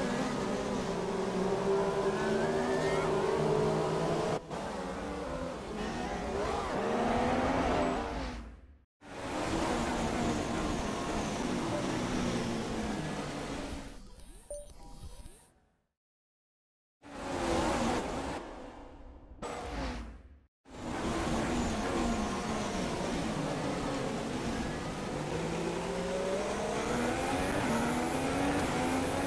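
Racing car engines whine loudly, rising in pitch and dropping as they change gear.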